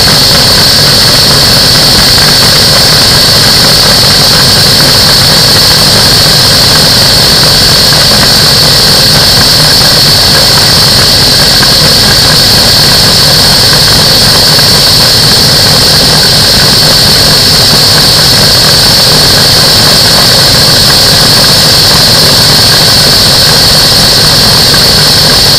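Wind rushes hard past in flight.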